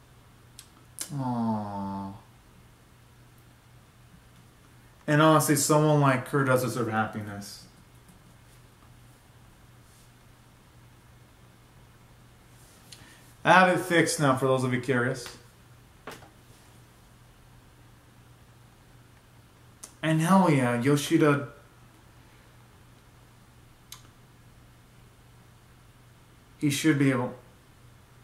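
A young man speaks close to the microphone in short bursts with quiet pauses between them.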